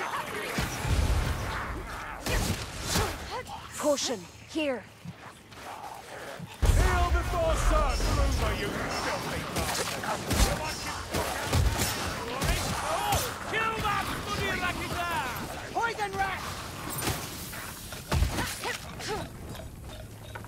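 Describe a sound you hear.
Arrows whoosh from a bow.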